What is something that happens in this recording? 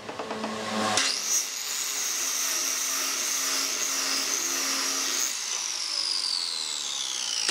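A power saw spins up to a steady high whine.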